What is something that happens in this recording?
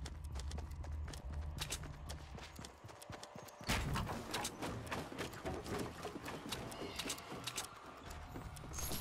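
Quick footsteps tap across wooden boards.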